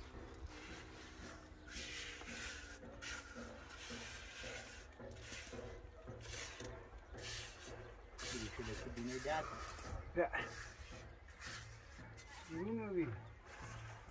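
A trowel scrapes mortar on concrete blocks in short strokes.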